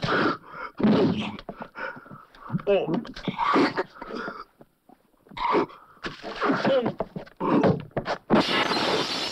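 Men grunt and shout as they brawl.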